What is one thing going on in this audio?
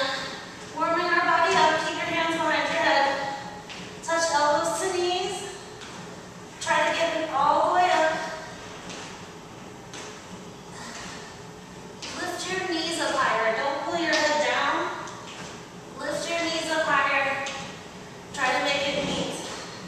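A woman talks calmly and clearly into a microphone.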